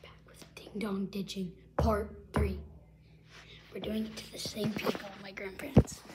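A young boy talks close by, playfully.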